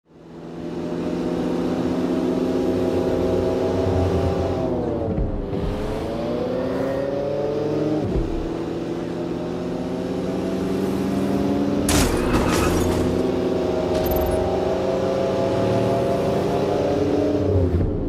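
A car engine hums steadily and revs up and down as it drives.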